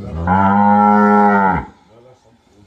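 A cow moos loudly nearby.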